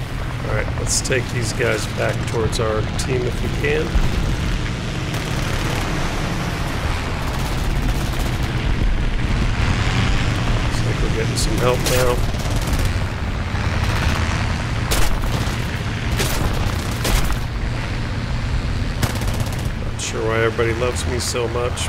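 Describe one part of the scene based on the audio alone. Machine guns fire in short bursts.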